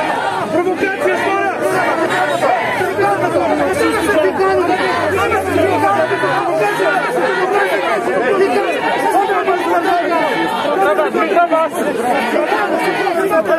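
A crowd of men shout over one another close by.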